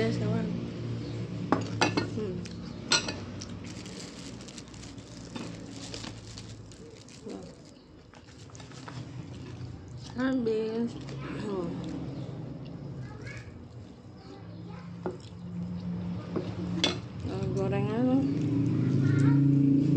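Crispy chips crunch as a woman bites into them.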